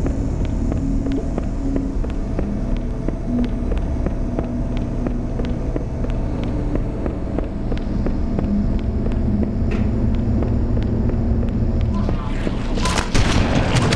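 A low electronic drone hums steadily.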